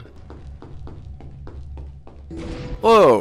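Footsteps patter quickly on a stone floor in a large echoing hall.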